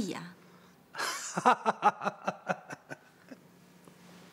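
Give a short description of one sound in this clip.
An older man laughs heartily.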